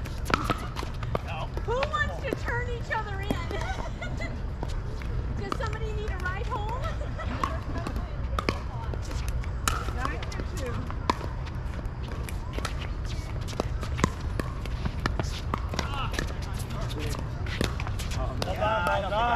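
Paddles knock a plastic ball back and forth with sharp pops.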